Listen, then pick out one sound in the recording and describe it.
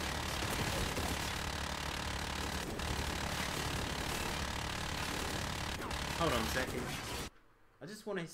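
Heavy gunfire rattles and booms from a game.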